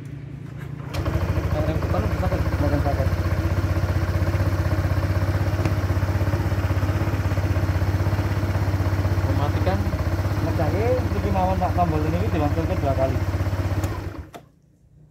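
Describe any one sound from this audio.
A scooter engine idles with a steady hum, then stops.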